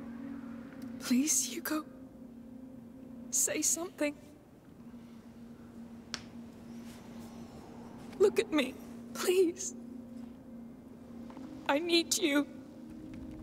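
A young woman pleads softly and tearfully, in short broken phrases.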